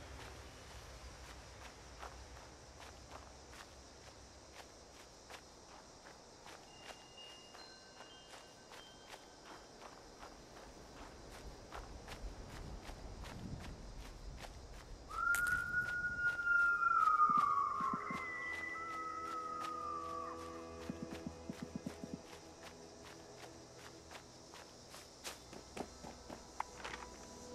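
Footsteps tread steadily through dry grass and leaves.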